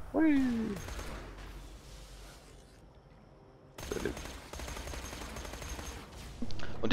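A fire crackles and roars.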